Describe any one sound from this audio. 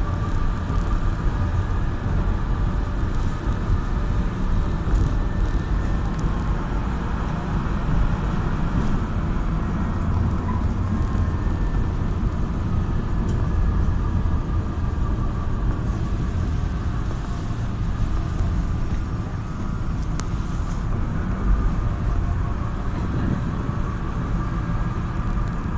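A car engine and tyres rumble steadily on the road from inside a moving car.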